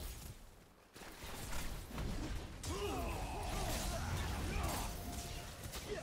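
Magical blasts whoosh and crackle in a fight.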